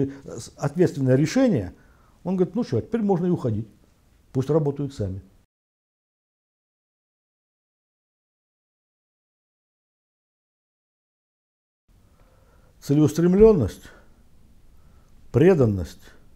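An elderly man speaks calmly and steadily into a close microphone.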